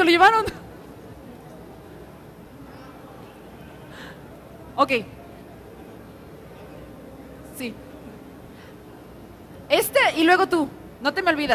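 A young woman speaks into a microphone through loudspeakers in a large echoing hall.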